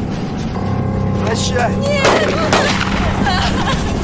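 A woman shouts in anguish.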